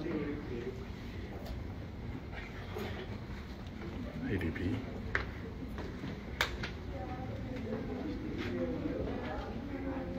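Men talk quietly nearby.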